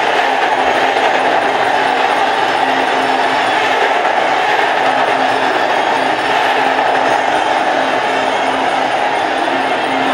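A crowd cheers and shouts loudly in a large hall.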